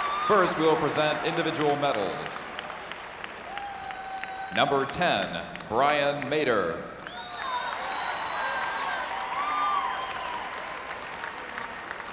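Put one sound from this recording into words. A large crowd claps in an echoing arena.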